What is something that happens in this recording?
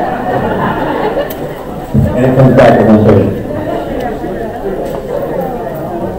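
A crowd of people chatters in a large room.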